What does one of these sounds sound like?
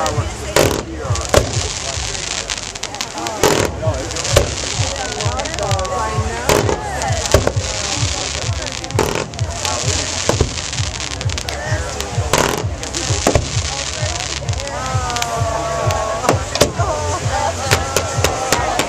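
Fireworks shells boom one after another.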